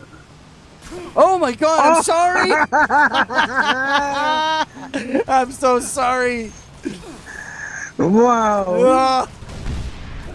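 A young man shouts and laughs excitedly into a close microphone.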